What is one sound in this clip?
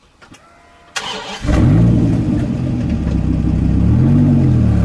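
A car engine starts with a loud crank and settles into a deep, rumbling idle.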